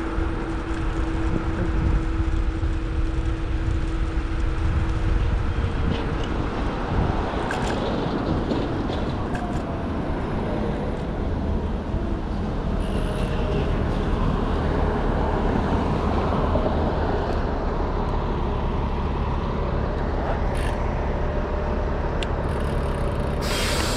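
Wind rushes steadily past the microphone.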